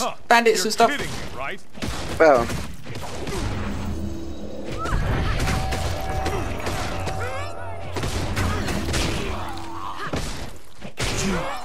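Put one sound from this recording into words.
Magic blasts whoosh and boom during a fight.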